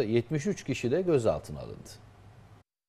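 A middle-aged man speaks calmly into a microphone, like a news presenter.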